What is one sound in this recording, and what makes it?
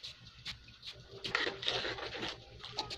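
A metal spatula scrapes and stirs in a pan.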